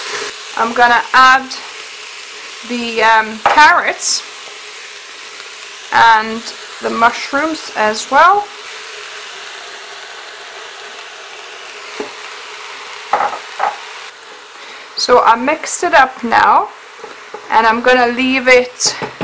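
A spatula stirs vegetables in a metal pot.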